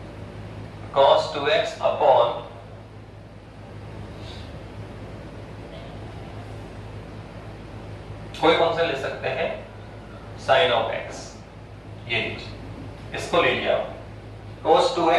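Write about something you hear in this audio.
A middle-aged man speaks calmly and clearly through a close microphone, in bursts with pauses.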